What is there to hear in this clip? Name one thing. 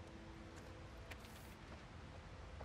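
Paper rustles as a sheet is unfolded.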